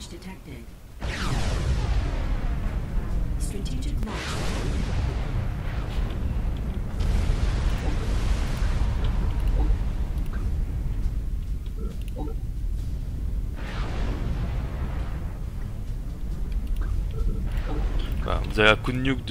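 Huge explosions boom and rumble deeply.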